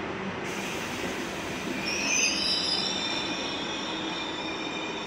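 Train brakes squeal high and wavering.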